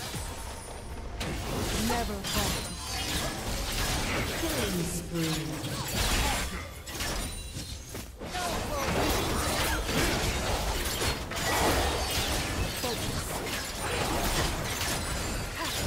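Magic blasts and hits crackle and thump in a video game battle.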